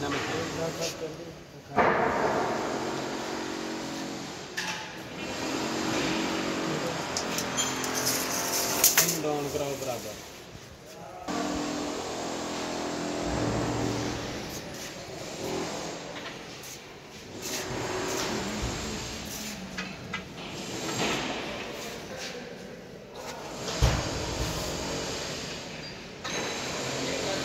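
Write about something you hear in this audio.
Spinning machines whir and hum steadily in a large hall.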